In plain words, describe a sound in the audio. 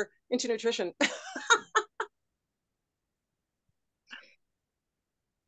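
A middle-aged woman laughs over an online call.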